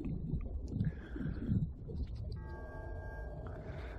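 Water swirls and gurgles, heard muffled from underwater.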